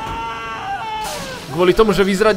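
A loud blast bursts and booms.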